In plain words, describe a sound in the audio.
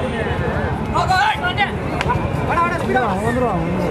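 Young men shout loudly during play.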